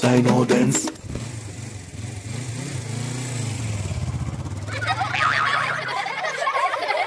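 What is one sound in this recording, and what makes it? A motorbike engine revs and rumbles.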